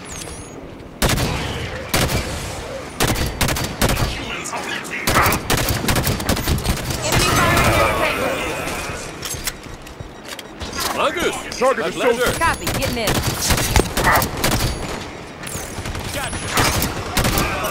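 Rapid gunfire bursts out in sharp cracks.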